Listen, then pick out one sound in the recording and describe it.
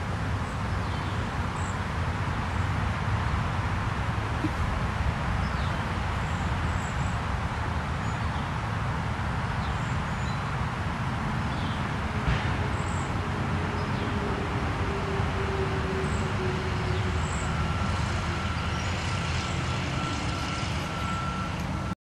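Wind blows outdoors and rustles the leaves of trees.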